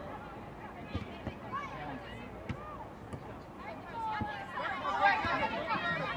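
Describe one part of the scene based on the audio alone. A soccer ball is kicked with a thud.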